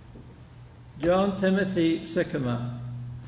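A man announces over a loudspeaker in a large echoing hall.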